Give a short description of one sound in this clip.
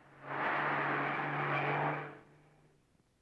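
A truck engine roars loudly, then dies down.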